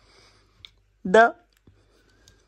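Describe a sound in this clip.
A baby monkey gives a short high squeal.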